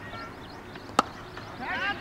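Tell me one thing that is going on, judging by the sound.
A cricket bat sharply hits a ball.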